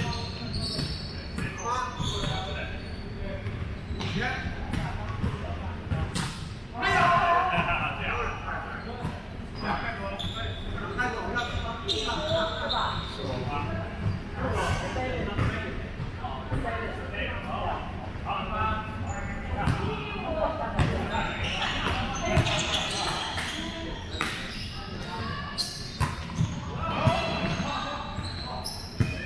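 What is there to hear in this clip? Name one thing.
A volleyball thumps off players' arms and hands in a large echoing hall.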